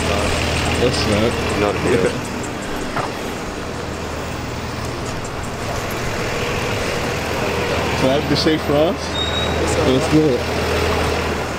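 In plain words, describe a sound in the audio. Young men talk nearby outdoors.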